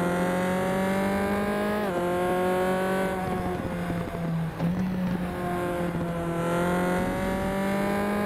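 A race car engine whines loudly and shifts pitch as it changes gear.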